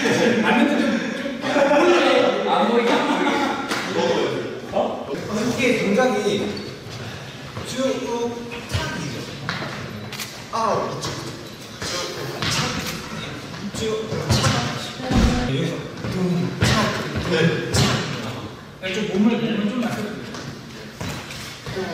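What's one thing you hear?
Sneakers squeak and thud on a wooden floor as young men dance.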